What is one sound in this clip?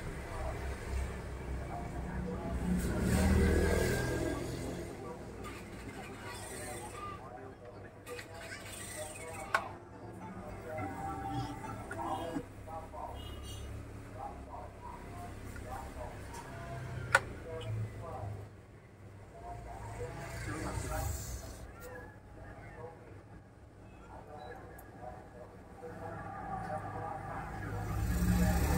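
Small metal parts click and tap as hands work on a device.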